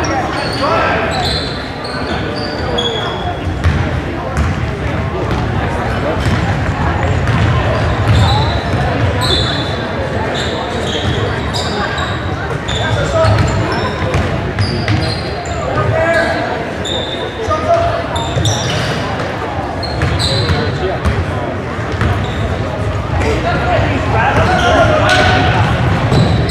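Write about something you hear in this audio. A crowd of spectators murmurs and chatters nearby.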